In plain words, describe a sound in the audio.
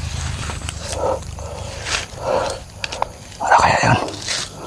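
A voice crackles over a handheld radio.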